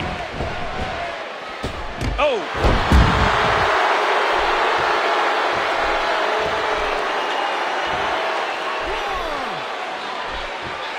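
An arena crowd cheers and roars.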